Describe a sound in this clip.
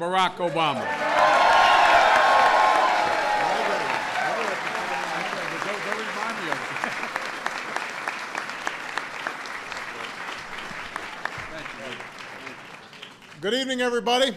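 A crowd applauds and cheers loudly, then the noise slowly dies down.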